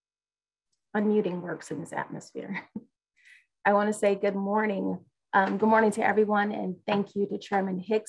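A woman speaks warmly over an online call.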